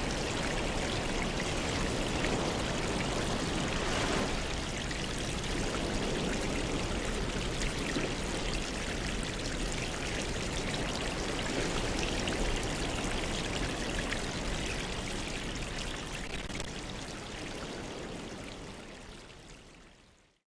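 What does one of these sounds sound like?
Air bubbles stream and gurgle steadily through water.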